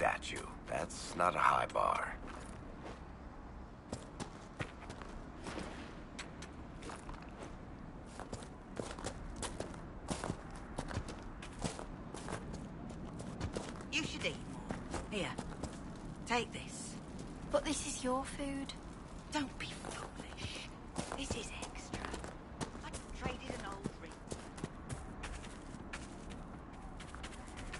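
Footsteps crunch steadily over dirt and grass.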